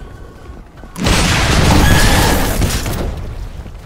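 A game weapon fires a loud crackling energy blast that slowly fades.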